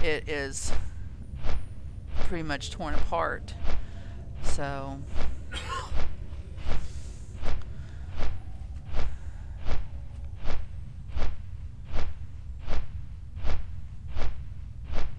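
Large wings flap in a steady, even rhythm with soft whooshes.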